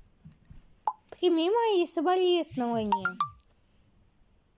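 A phone chimes with a message alert.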